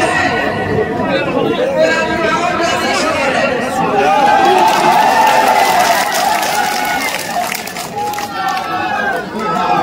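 A large crowd cheers and chants.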